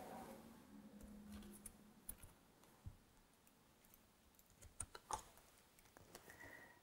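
Playing cards slide and tap on a table.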